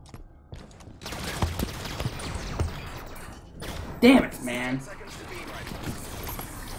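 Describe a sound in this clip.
Energy weapons fire in rapid bursts.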